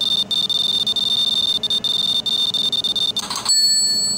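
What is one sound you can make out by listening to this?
A rapid electronic ticking counts up points.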